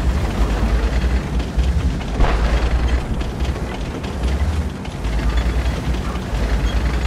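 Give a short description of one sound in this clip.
A tank engine rumbles deeply and steadily.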